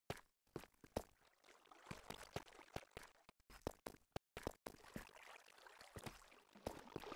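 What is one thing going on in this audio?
Water trickles and flows.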